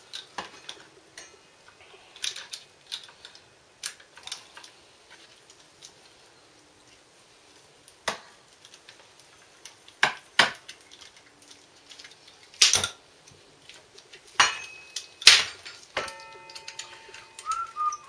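A ratchet wrench clicks as bolts are turned.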